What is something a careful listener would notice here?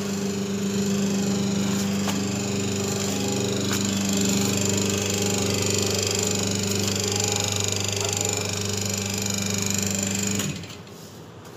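A machine motor hums steadily, then stops.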